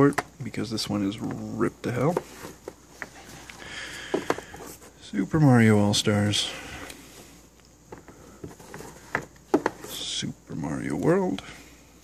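Cardboard game boxes slide and tap against each other as they are pulled from a shelf.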